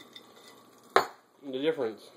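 A small piece drops into a glass jar with a clink.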